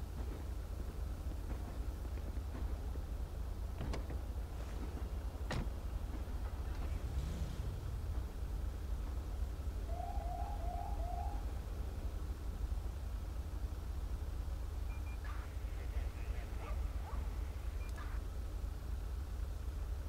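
Police car engines idle with a low, steady rumble.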